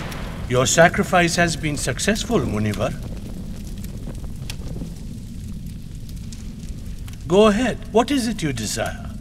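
An elderly man speaks solemnly, close by.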